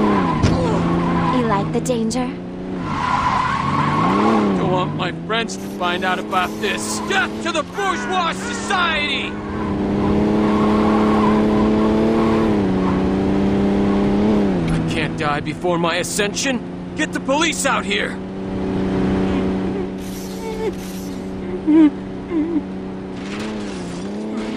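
A car engine hums steadily, rising and falling in pitch as the car speeds along.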